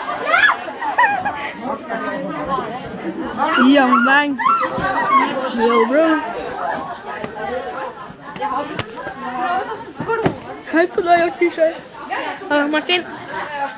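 Young women talk and laugh loudly close by.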